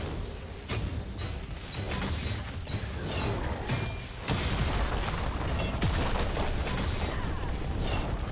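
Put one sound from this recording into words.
Game spell effects and weapon hits clash and crackle in rapid bursts.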